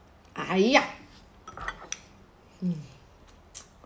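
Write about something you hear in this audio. Chopsticks clink against a bowl.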